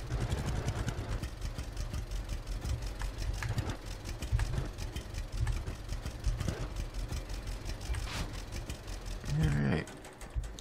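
A small tractor engine putters with a steady chugging rumble.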